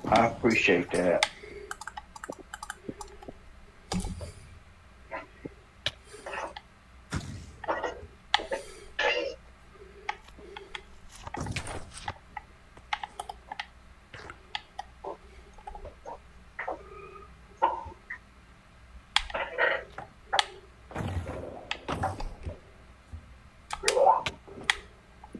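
Short game sound effects pop, whoosh and click again and again.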